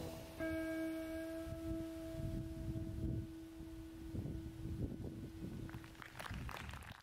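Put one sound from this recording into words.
A trombone holds a long, steady note and then stops.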